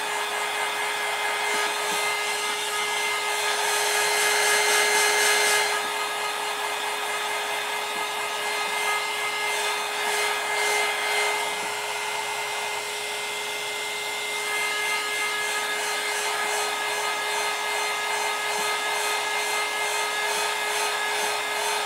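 A heat gun blows with a steady rushing whoosh.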